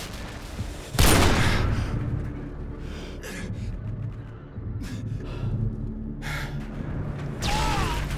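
An explosion rumbles and crackles.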